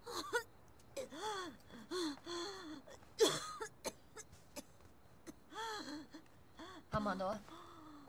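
A young woman answers weakly, in a pained voice.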